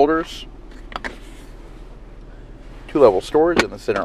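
A plastic console lid clicks open.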